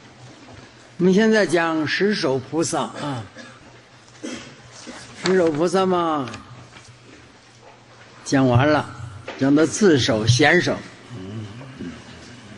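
An elderly man speaks slowly and calmly into a microphone, with pauses between phrases.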